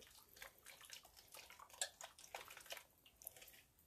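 A utensil scrapes and clinks against a metal pot.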